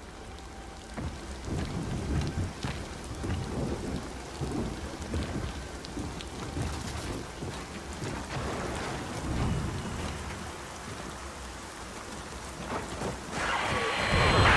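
Heavy footsteps crunch over debris and gravel.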